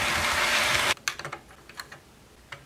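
Fingers rustle a paper sticker against a plastic model.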